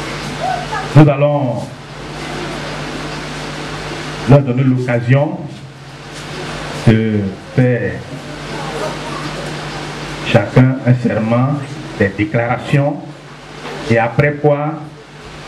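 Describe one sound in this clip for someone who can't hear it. A man speaks with animation through a microphone and loudspeakers in an echoing room.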